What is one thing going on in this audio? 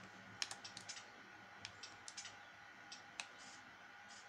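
Short menu clicks sound from a television speaker.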